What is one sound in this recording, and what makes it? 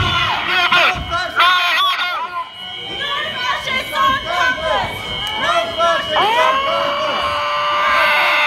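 A young person shouts through a megaphone close by.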